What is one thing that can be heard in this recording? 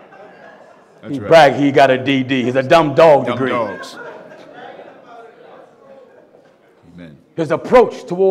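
A middle-aged man speaks with animation through a microphone in an echoing hall.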